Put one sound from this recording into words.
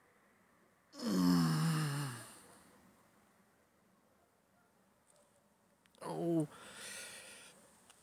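A man lets out loud, drawn-out exclamations close by.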